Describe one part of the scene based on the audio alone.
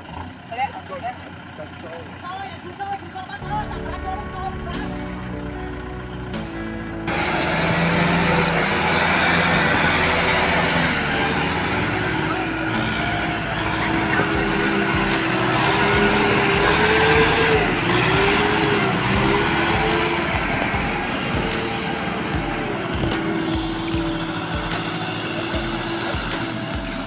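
Tractor wheels churn and splash through wet mud.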